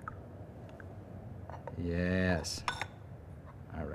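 A ceramic lid clinks against a clay teapot.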